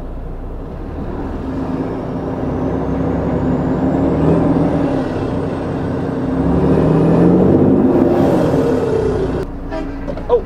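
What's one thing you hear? A vehicle engine hums steadily with road noise while driving.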